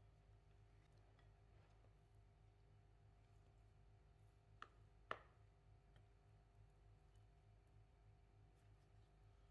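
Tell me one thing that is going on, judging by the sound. A silicone spatula stirs thick dough with soft, sticky squelches.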